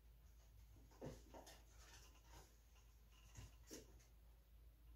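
Plastic and metal parts click and rattle softly.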